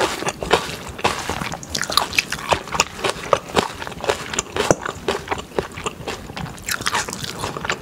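A metal spoon scrapes and clinks in a stainless steel bowl while mixing rice.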